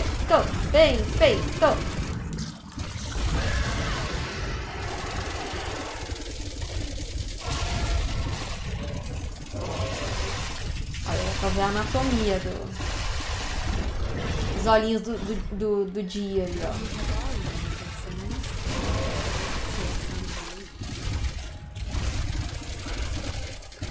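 A monstrous creature roars and growls loudly.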